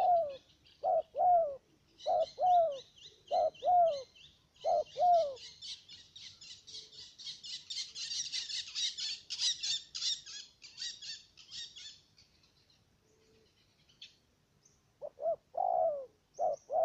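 A dove coos repeatedly nearby.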